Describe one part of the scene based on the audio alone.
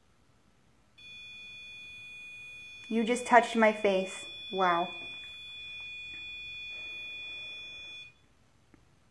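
An electronic toy gives off a steady high electronic tone.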